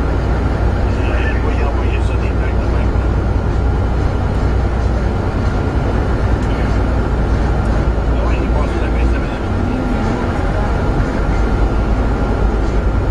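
A car engine rumbles low and close.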